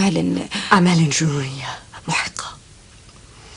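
A woman speaks in a tearful, emotional voice close by.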